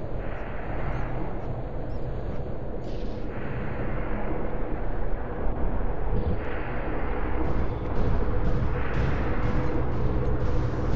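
Stormy waves surge and crash against rocks in swelling rushes.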